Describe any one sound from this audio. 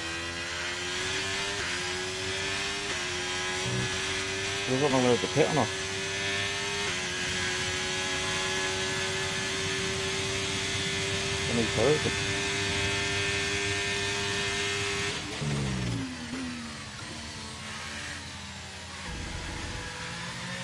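A racing car engine screams at high revs.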